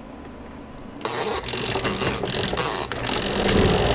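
A knob on a washing machine clicks as it turns.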